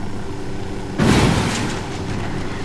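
A motorcycle crashes with a loud thud.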